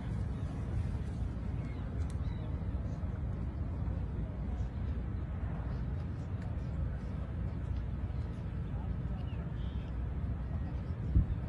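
A crowd murmurs quietly outdoors.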